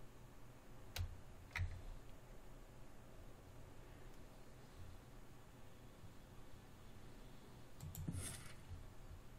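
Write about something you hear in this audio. Short interface clicks sound a few times.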